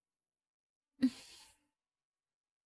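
A young woman sighs briefly close by.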